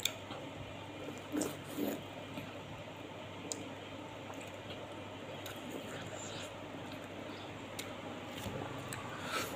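A woman bites and chews juicy fruit close by.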